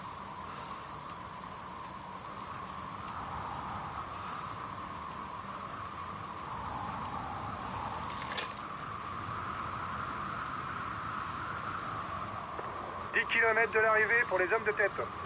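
Bicycle tyres whir steadily along a paved road.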